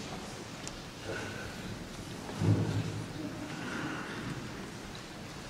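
A man speaks quietly in a large echoing hall.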